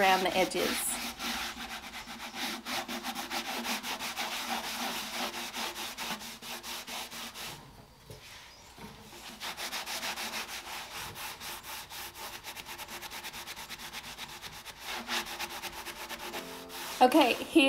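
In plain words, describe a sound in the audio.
Sandpaper rubs rapidly back and forth across a wooden surface with a dry scratching sound.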